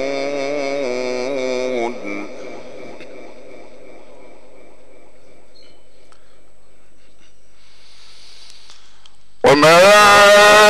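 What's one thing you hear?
A middle-aged man chants in long, melodic drawn-out phrases through a microphone, echoing in a large space.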